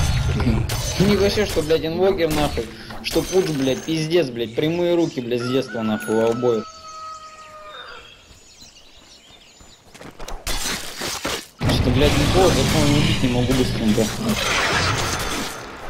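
An elderly man talks with animation into a close microphone.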